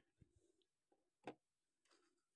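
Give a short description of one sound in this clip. A multimeter's rotary dial clicks as it is turned.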